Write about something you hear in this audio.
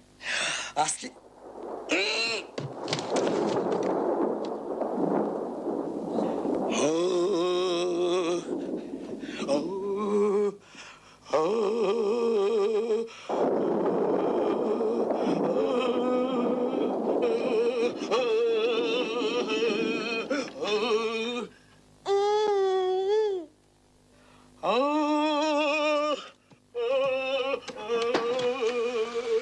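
A man shouts loudly and angrily nearby.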